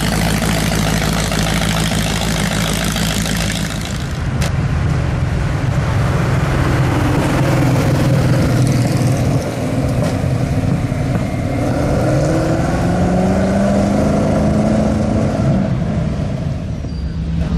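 A sports car engine rumbles loudly as the car drives past.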